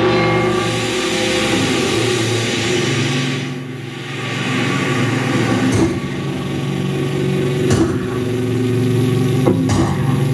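Electronic synthesizer tones hum and buzz steadily.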